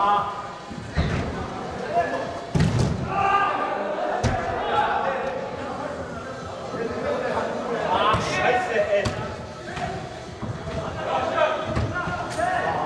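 A ball thuds against boards and feet.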